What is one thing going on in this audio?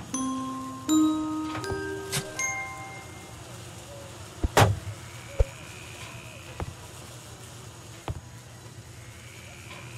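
Footsteps thud on wooden floorboards.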